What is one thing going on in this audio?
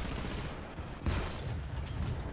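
A tank cannon fires with a loud boom.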